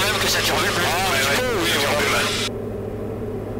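A man talks over a headset intercom.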